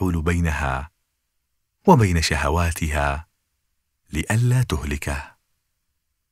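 A man speaks calmly and clearly, close to a microphone, with short pauses.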